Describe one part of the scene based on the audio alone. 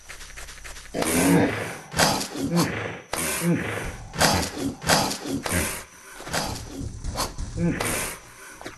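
A hippo grunts and bellows loudly.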